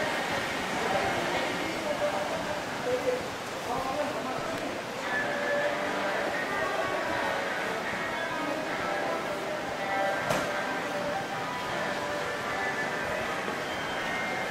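A crowd murmurs faintly in the distance, in a covered arcade with a slight echo.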